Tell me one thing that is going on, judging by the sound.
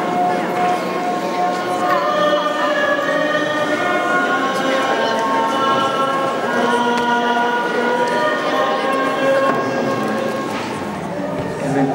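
A congregation of men and women sings together in a large echoing hall.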